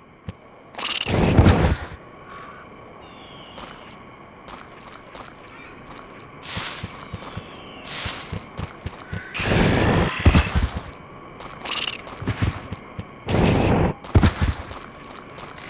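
Gunshots blast at dinosaurs.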